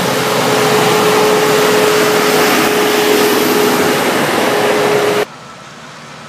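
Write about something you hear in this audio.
A rail work vehicle rumbles past close by on the tracks.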